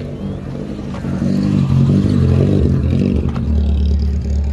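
A car drives past close by, its engine rumbling.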